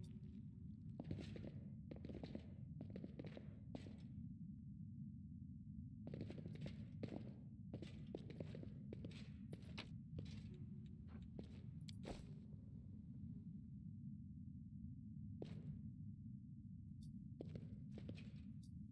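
A young man talks calmly and close to a microphone, in bursts with pauses.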